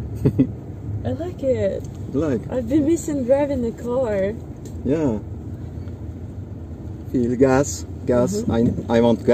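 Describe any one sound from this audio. A young woman laughs and talks nearby.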